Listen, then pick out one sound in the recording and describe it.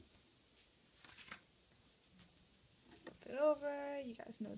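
Paper rustles as a sheet is lifted and handled.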